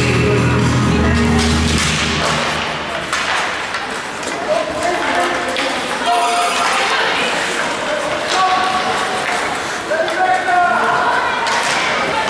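Ice skates scrape and carve on ice in a large echoing rink.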